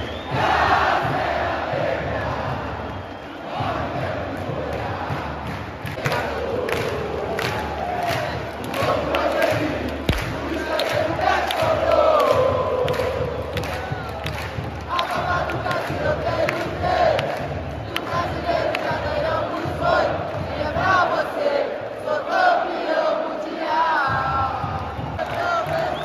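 A huge stadium crowd sings and chants loudly, echoing around.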